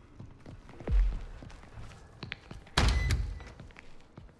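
A wooden door bumps open.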